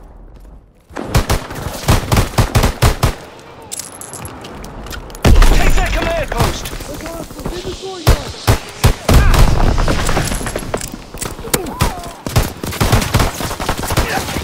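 Pistol shots crack in rapid bursts.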